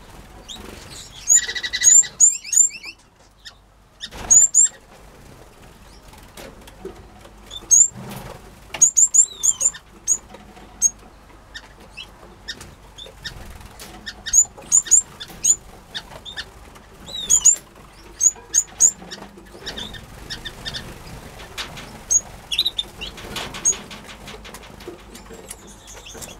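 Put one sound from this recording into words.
Small birds chirp and tweet in short bursts close by.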